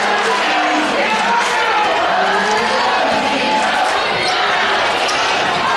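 A crowd cheers and chatters loudly in a large echoing gym.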